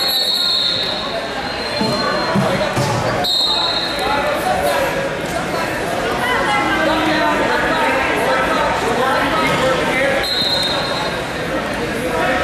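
Wrestlers' shoes squeak and thud on a mat.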